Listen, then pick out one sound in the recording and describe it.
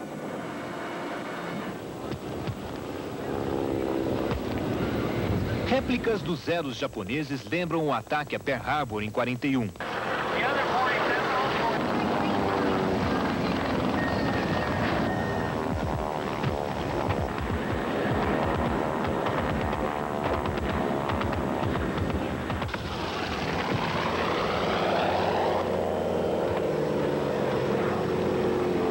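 Propeller plane engines drone and roar overhead.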